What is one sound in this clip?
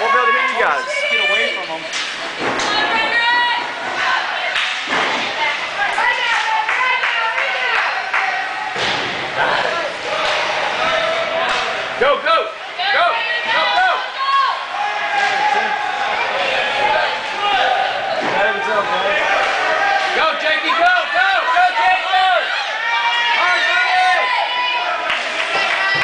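Spectators shout and cheer loudly in an echoing rink.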